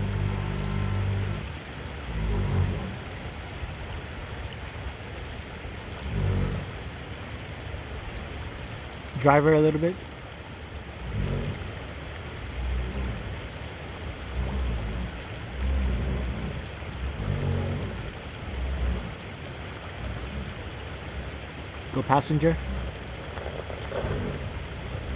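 A creek babbles steadily over stones.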